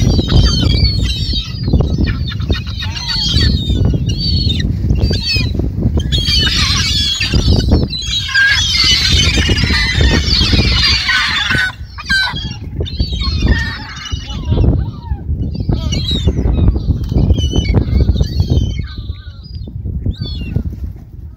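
A flock of gulls calls close overhead.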